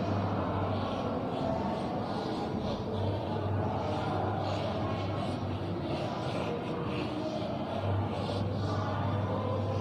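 Chalk scratches and taps on a blackboard in short strokes.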